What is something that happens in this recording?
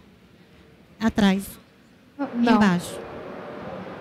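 A woman speaks in short bursts through a microphone in a large hall.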